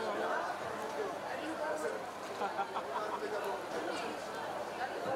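A crowd of women chatter and call out excitedly close by.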